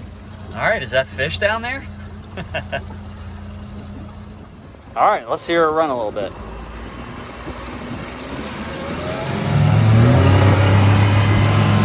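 An outboard motor idles, then roars louder as it speeds up.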